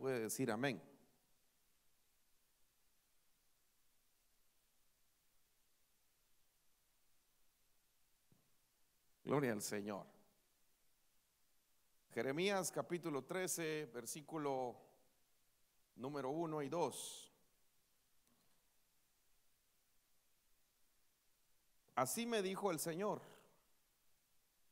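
A man speaks into a microphone in short bursts, heard through loudspeakers in a large room.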